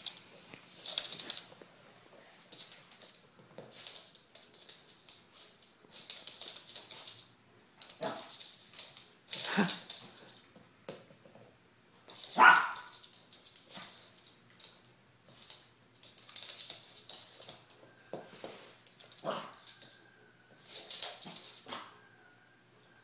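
A dog's claws click and scrabble on a hard floor.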